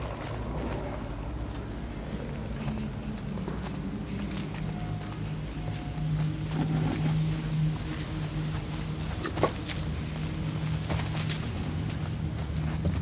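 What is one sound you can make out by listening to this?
A road flare hisses and sputters as it burns.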